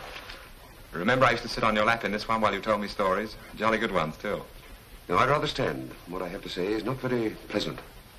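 An older man speaks in a firm voice nearby.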